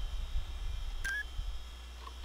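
Menu selection beeps and clicks sound briefly.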